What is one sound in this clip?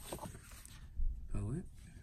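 A sheet of paper rustles in a hand close by.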